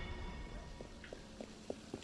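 Footsteps run quickly over cobblestones.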